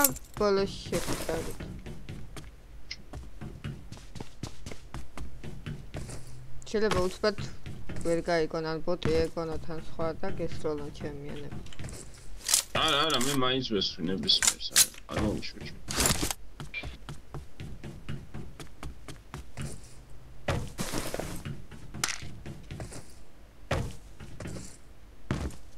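Footsteps clang quickly on metal roofs.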